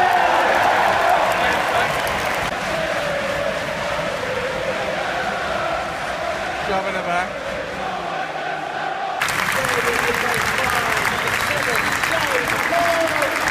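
A large crowd chants and sings loudly in an open stadium.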